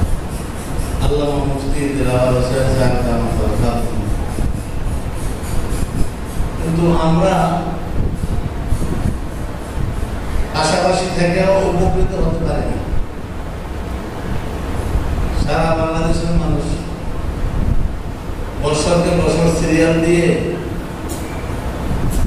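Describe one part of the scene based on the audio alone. A man speaks in a chanting, melodic voice through a microphone, in an echoing hall.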